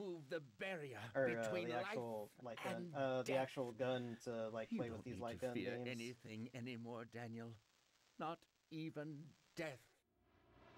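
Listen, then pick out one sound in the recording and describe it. A man speaks softly and calmly.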